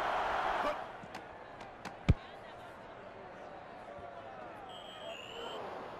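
A stadium crowd roars and cheers.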